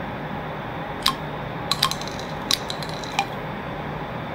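Shotgun shells click as they are loaded into a gun.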